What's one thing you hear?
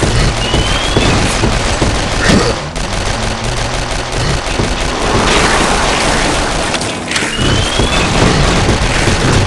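Rapid gunfire rattles.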